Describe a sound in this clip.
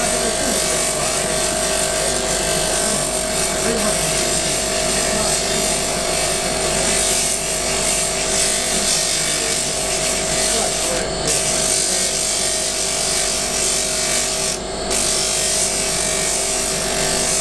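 A wooden piece hisses against a spinning polishing wheel.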